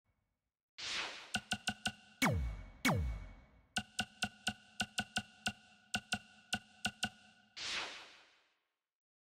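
Menu clicks and swooshes tick as options are scrolled.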